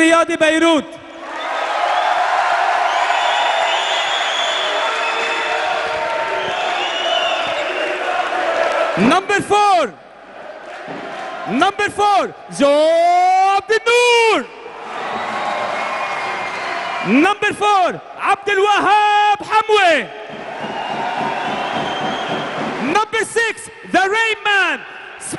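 A large crowd cheers and roars in a big echoing hall.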